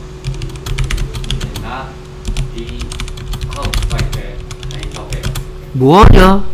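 Keys on a keyboard tap quickly.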